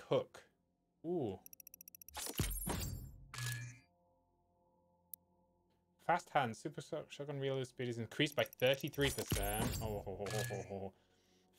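Game menu chimes sound.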